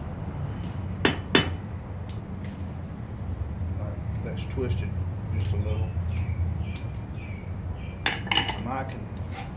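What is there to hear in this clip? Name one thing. A hammer strikes metal on an anvil with sharp ringing clangs.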